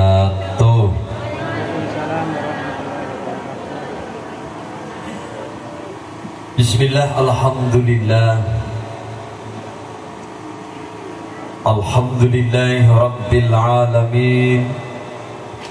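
An elderly man sings loudly through a loudspeaker microphone.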